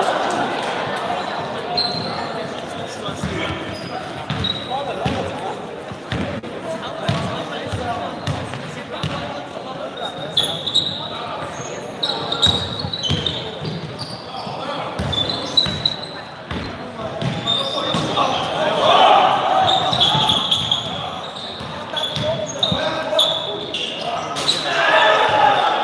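A crowd of young people chatters and shouts in the background.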